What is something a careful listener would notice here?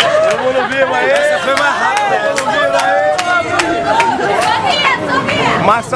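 A group of young men and women sing loudly together close by.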